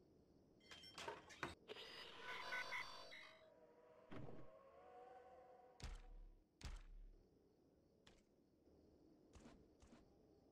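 Short game interface clicks and chimes sound as menus open and close.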